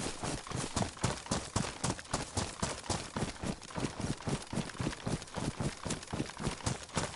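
Footsteps crunch quickly through dry grass and dirt.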